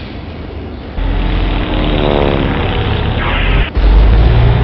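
A plane dives with a falling whistle.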